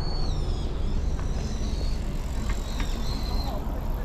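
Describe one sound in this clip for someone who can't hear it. Bicycles roll past on a paved path.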